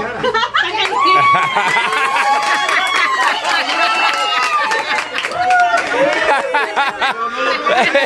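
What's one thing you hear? A group of people laughs and cheers loudly.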